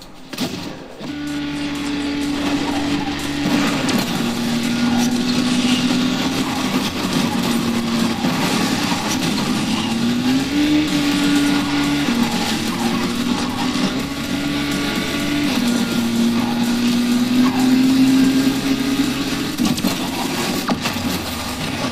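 A race car engine roars and shifts pitch as it speeds along.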